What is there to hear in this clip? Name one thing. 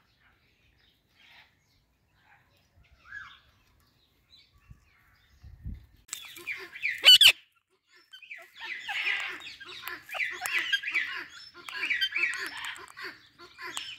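Parakeets squawk and chatter close by.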